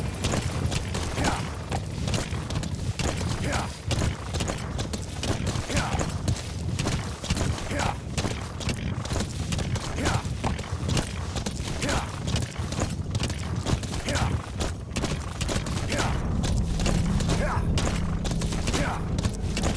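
Hooves pound steadily on dry ground as a horse gallops.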